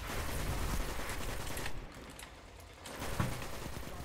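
A gun fires rapid shots.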